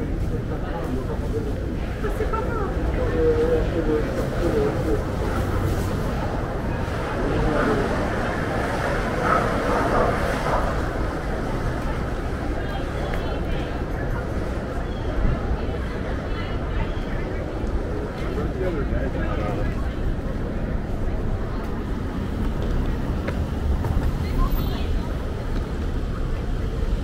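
City traffic rumbles steadily in the distance outdoors.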